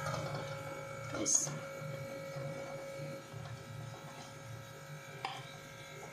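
A spatula scrapes soft butter into a pan.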